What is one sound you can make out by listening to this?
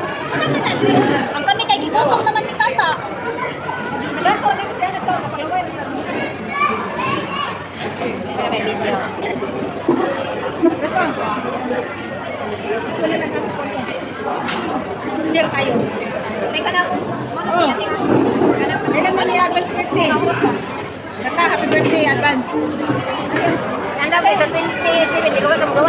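A middle-aged woman talks with animation close by.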